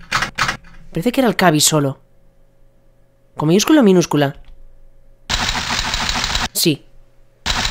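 A young man speaks with animation into a nearby microphone.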